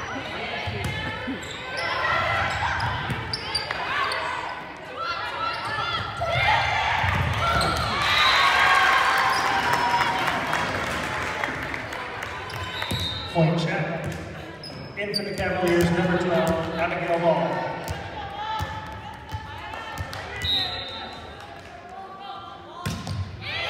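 Young women shout and call out to each other in a large echoing gym.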